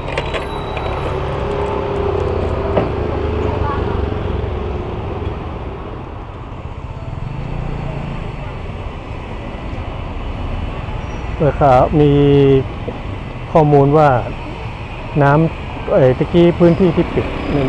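Motorbikes pass by on the road.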